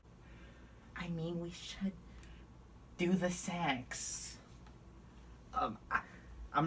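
A teenage boy talks and laughs close by.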